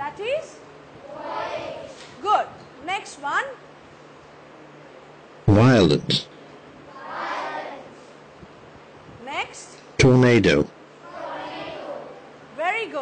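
A class of children repeats words together in chorus.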